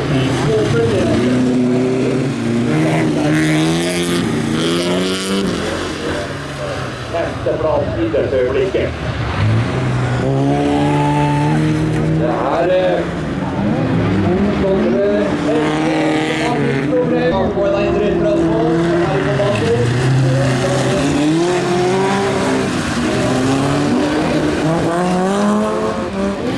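Rally car engines roar and rev up and down as the cars race past.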